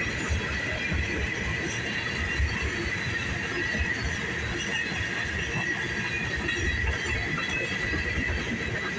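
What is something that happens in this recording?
Wheels squeal against the rails with a steady high whine.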